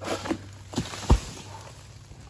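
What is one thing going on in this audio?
A heavy fruit bunch thuds onto the ground.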